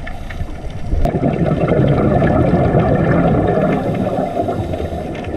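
A scuba diver's exhaled bubbles rumble and gurgle loudly underwater.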